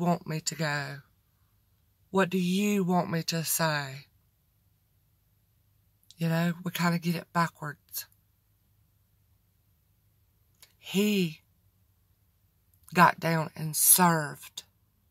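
A woman speaks close up with animation, in bursts with pauses.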